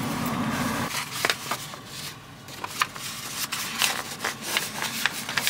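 Stiff paper rustles and crackles as it is wrapped around something.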